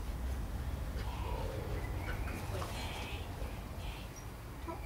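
A young woman speaks softly to a dog.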